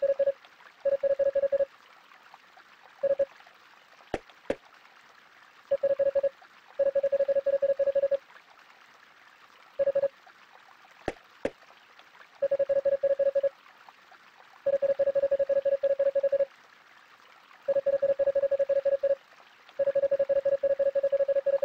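Rapid electronic beeps chatter in short bursts as dialogue text types out.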